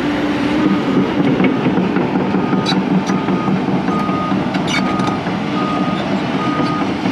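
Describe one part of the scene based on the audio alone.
A travel alarm beeps repeatedly.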